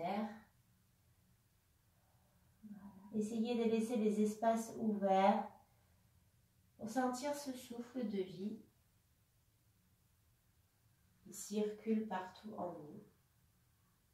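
A woman speaks calmly and clearly, as if guiding an exercise, close by.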